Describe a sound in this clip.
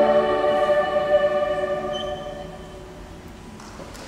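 A choir sings a held chord that rings out and fades in an echoing hall.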